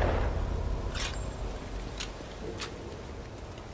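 Gear clicks and rattles.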